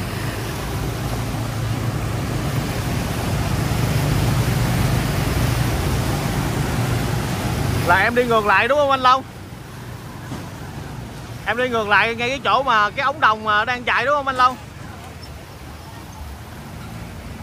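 Motorbikes splash through deep water close by.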